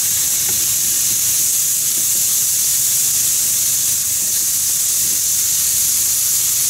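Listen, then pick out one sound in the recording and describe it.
Meat sizzles steadily in a hot frying pan.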